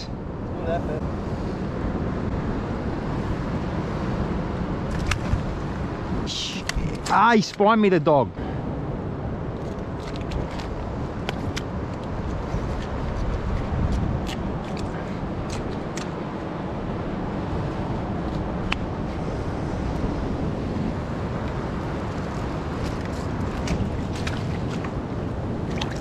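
Water splashes and sloshes as someone wades in shallow water.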